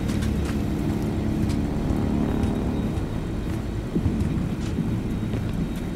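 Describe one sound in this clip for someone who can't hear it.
Footsteps crunch on dry gravel.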